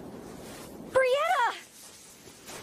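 A young woman cries out in a high voice.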